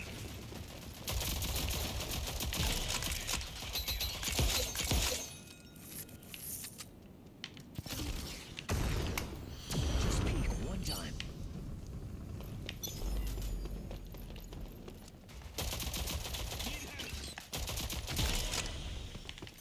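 Gunfire from a video game rattles in quick bursts.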